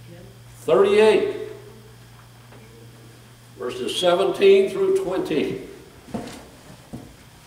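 A middle-aged man speaks with emphasis through a microphone in a room with some echo.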